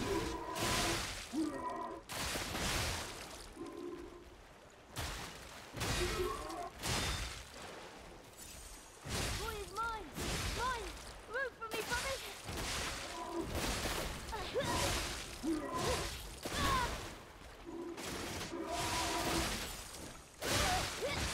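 Heavy blades clash and strike in a fierce fight.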